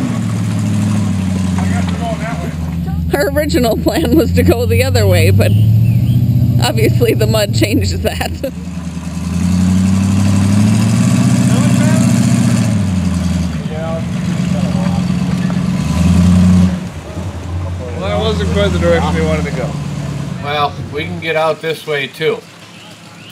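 Engines rumble and rev loudly outdoors.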